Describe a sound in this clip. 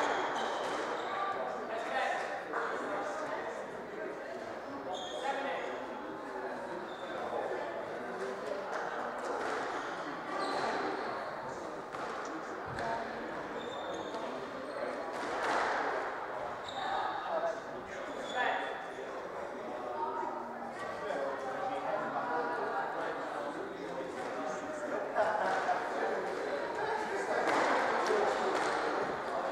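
Sneakers squeak on a wooden court floor.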